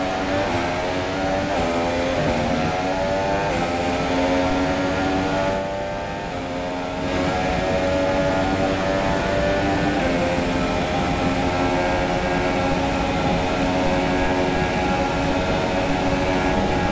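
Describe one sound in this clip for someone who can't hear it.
A racing car engine screams at high revs, rising through the gears with brief dips at each shift.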